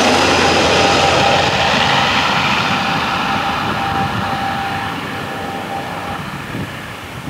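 A propeller airliner rumbles away into the distance, fading.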